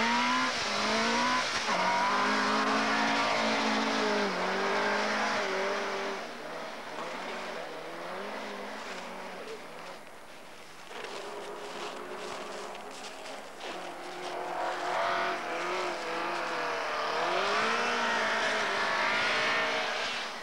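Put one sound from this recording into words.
A car engine revs hard and roars nearby.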